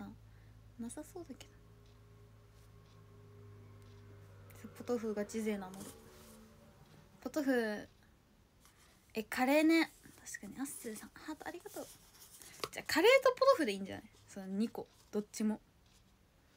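A young woman talks close to a microphone, calmly, in short bursts.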